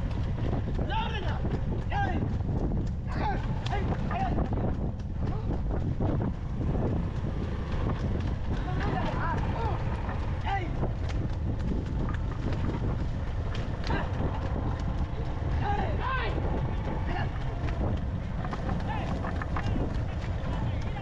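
A man shouts loudly outdoors.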